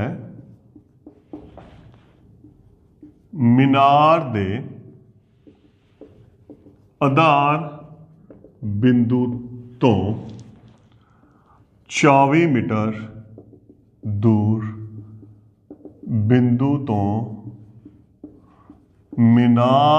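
A man speaks calmly and clearly, close by, in short bursts with pauses.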